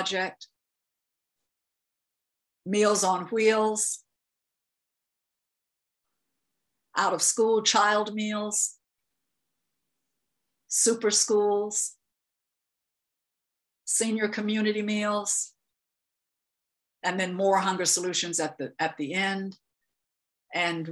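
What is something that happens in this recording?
A woman speaks calmly over an online call, in short phrases with long pauses.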